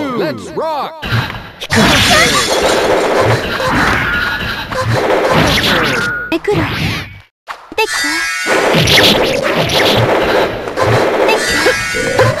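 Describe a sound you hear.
Punches, kicks and energy blasts thud and crash in a fighting game.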